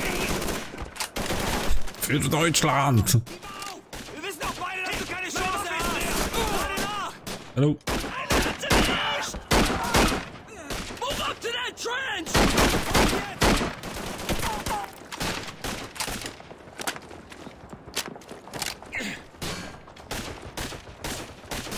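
Rifles fire in sharp, repeated cracks.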